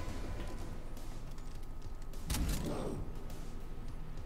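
A creature growls deeply.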